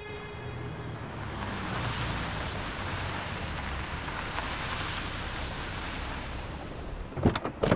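A car drives slowly past over cobblestones.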